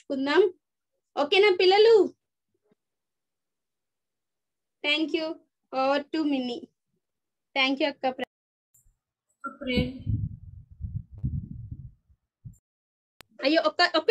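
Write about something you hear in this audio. A woman speaks with animation through an online call, in bursts with pauses.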